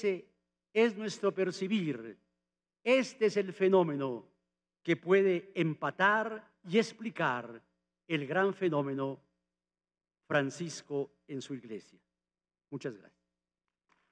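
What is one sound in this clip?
An elderly man speaks slowly and formally through a microphone in a large echoing hall.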